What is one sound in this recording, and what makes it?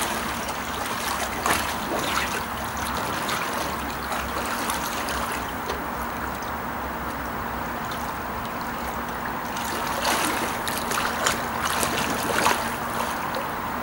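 Water splashes as a person swims.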